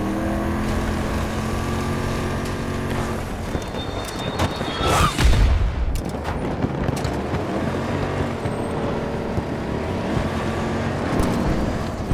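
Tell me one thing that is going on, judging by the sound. A vehicle engine roars as it climbs rough ground.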